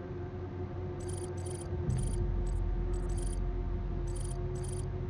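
Short electronic menu blips sound in quick succession.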